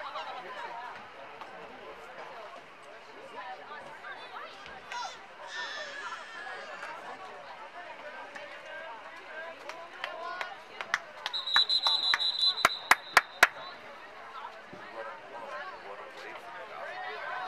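Boys and men talk and call out outdoors on an open field.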